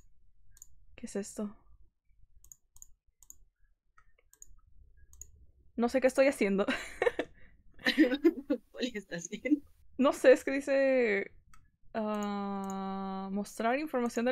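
A young woman talks with animation through a microphone.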